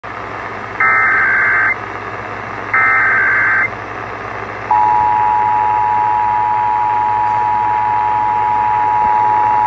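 A radio hisses with static.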